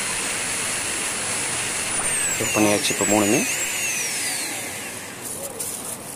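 A small electric motor whirs steadily as its shaft spins.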